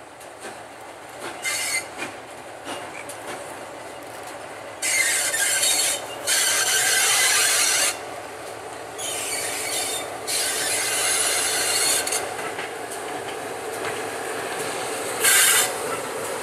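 A train engine rumbles steadily, growing louder as it approaches.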